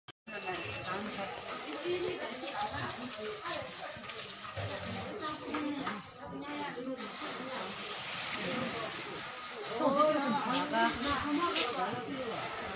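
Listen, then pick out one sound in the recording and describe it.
Several men and women chatter nearby.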